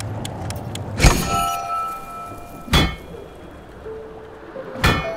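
A hammer strikes metal on an anvil with a ringing clang.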